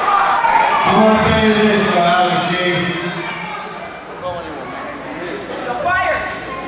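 A middle-aged man talks loudly into a microphone over a loudspeaker, echoing in a large hall.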